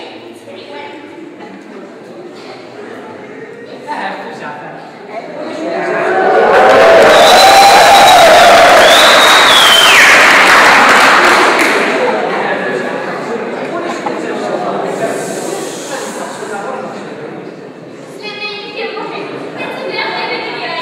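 A young woman speaks in a large echoing hall.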